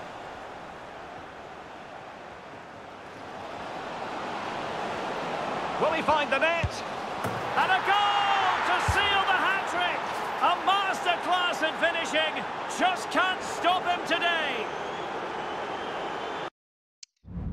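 A stadium crowd roars, swelling louder as play nears the goal.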